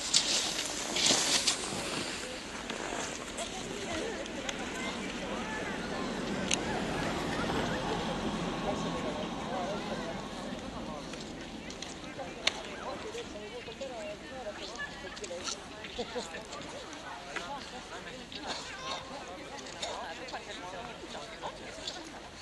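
Several adults chat quietly nearby, outdoors.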